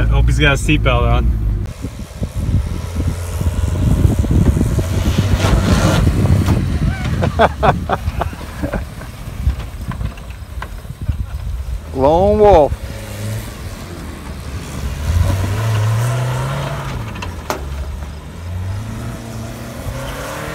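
A car engine revs and roars nearby.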